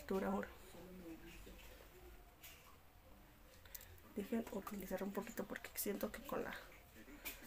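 A young woman talks calmly and close into a microphone.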